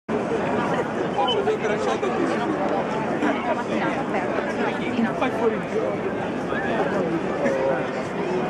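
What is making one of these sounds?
A crowd of people chatters nearby outdoors.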